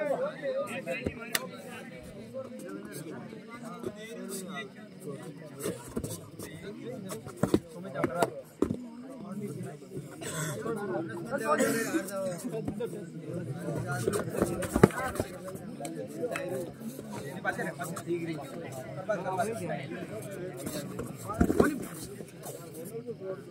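A young man chants without pausing while raiding.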